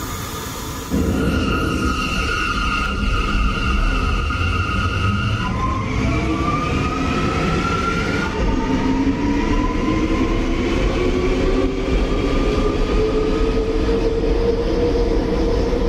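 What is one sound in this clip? Steel wheels rumble on rails.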